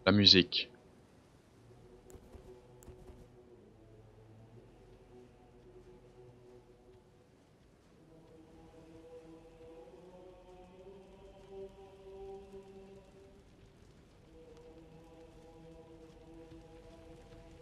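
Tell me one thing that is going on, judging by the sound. Footsteps tread steadily on stone.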